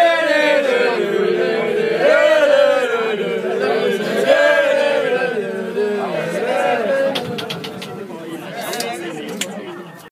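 A crowd of young men and women sings loudly together nearby.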